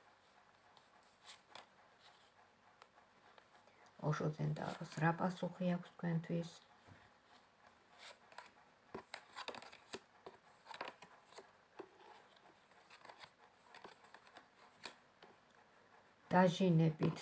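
Playing cards shuffle and riffle with soft, quick clicks.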